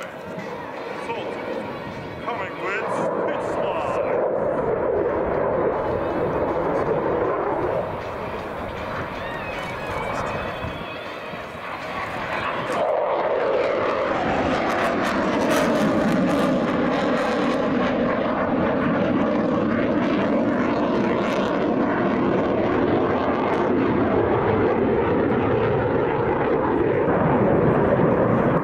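A jet engine roars loudly overhead, rising and falling in pitch as the aircraft turns.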